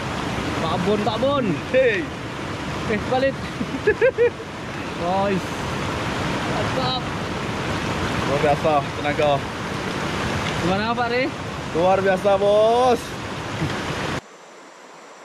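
A river rushes over rapids nearby.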